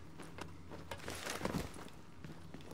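A heavy thud lands on the ground.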